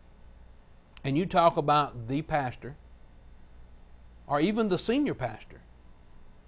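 A man speaks calmly and clearly into a microphone, in short phrases with pauses.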